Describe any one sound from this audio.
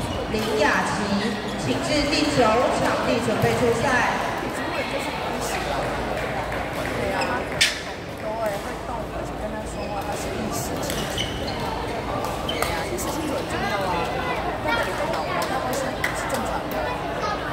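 A crowd of people chatter in the background.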